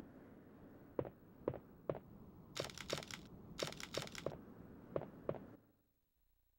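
Footsteps tap steadily on a hard floor in a large echoing room.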